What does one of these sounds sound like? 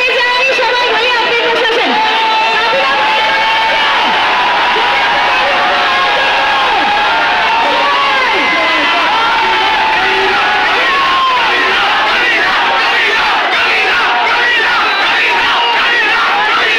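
A large crowd of young men cheers and shouts loudly all around, outdoors.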